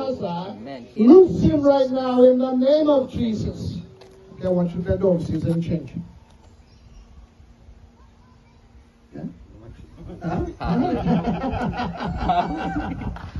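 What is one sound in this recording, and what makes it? A man speaks with fervour through a microphone and loudspeakers.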